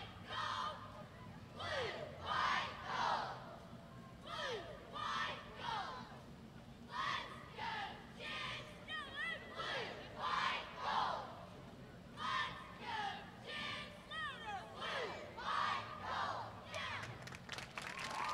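A group of young women chant a cheer loudly in unison outdoors.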